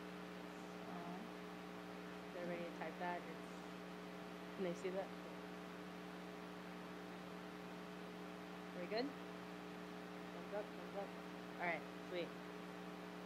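A young woman speaks quietly and briefly through a microphone.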